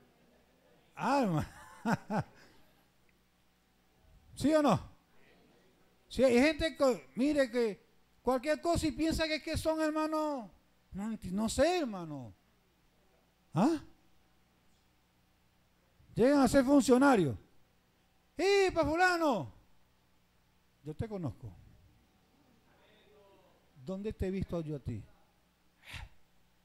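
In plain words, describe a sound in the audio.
A man preaches with animation through a microphone and loudspeakers, with pauses between phrases.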